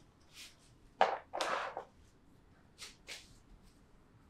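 Small glass bottles clink lightly up close.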